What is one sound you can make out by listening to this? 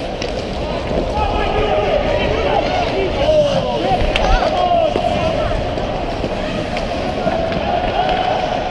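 Young boys shout to each other across the rink.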